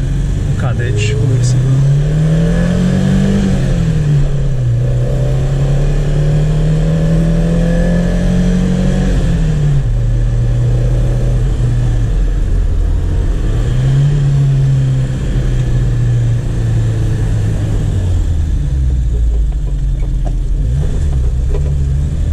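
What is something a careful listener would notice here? Tyres roll on an asphalt road.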